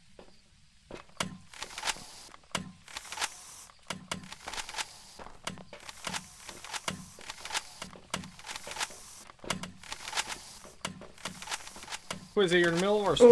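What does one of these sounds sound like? A spray gun hisses in short, repeated bursts.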